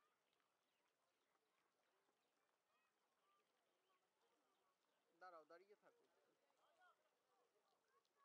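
A crowd of visitors chatters softly in the distance outdoors.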